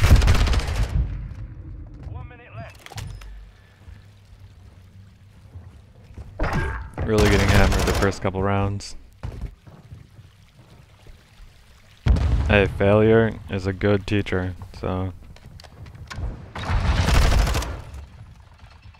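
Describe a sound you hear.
Rapid gunfire rings out in short bursts.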